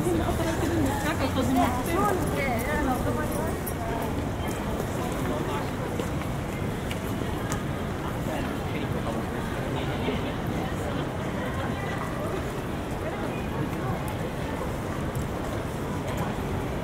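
A crowd of people chatters nearby on a busy street.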